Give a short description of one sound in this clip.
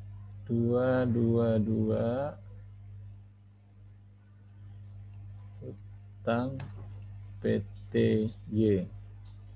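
A man speaks calmly through an online call microphone, in short phrases.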